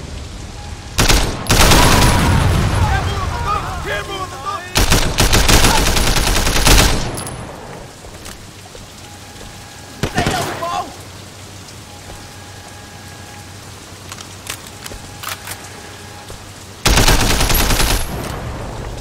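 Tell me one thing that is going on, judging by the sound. Rifle gunfire bursts out loudly in rapid rounds.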